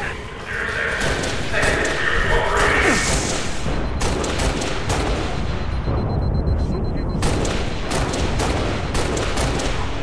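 Gunshots crack from a game in quick bursts.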